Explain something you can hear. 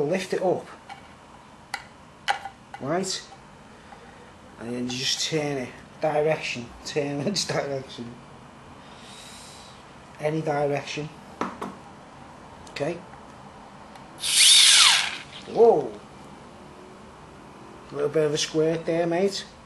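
Metal clicks and scrapes as a keg tap is fitted.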